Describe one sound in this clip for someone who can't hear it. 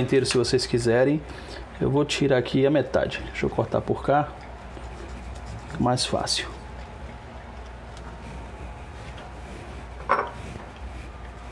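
A knife cuts through broccoli on a plastic board.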